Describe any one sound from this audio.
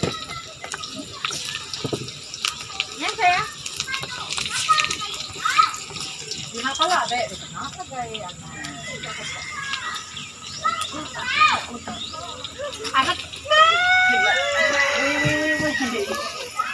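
Young women talk with animation close by.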